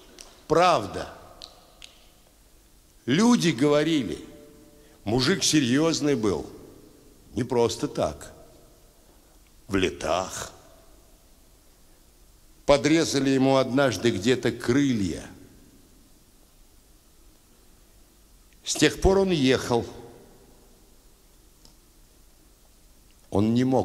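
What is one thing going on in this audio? An elderly man speaks slowly and expressively into a microphone, with pauses, in a large reverberant hall.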